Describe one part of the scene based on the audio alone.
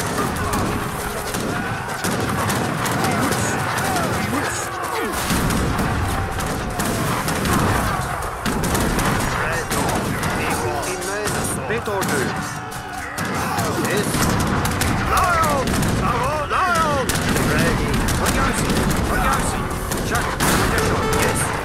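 Musket fire crackles in a battle.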